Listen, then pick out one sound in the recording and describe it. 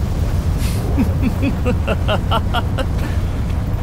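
A man laughs loudly and menacingly.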